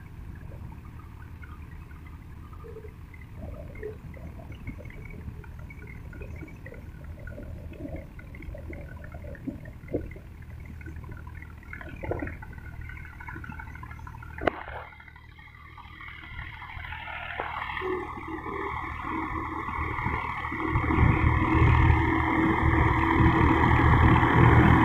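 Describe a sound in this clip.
Tractor engines rumble steadily, growing louder toward the end.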